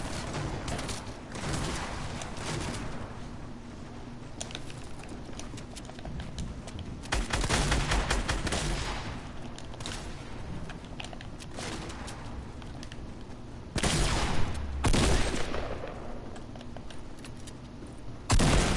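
Building pieces snap into place with sharp knocks in a video game.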